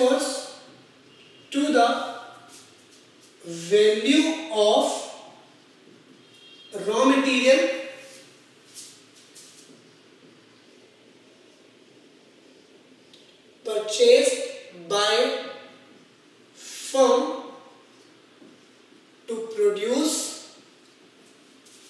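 A young man speaks calmly in short phrases, close by.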